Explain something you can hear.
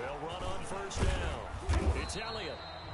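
Football players collide in a tackle with heavy thuds.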